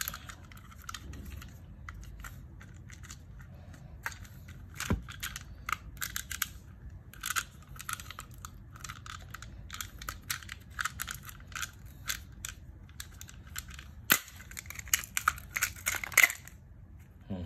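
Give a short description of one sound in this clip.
Small plastic parts click and rattle as hands handle them up close.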